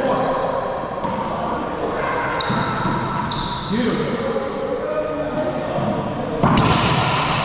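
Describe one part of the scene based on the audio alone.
A racquetball smacks hard against the walls, echoing in a large hard room.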